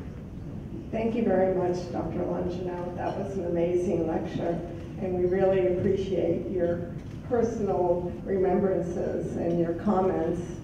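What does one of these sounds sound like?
A woman speaks calmly into a microphone over a loudspeaker in a large room.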